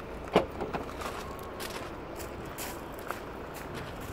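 A car's tailgate clicks open.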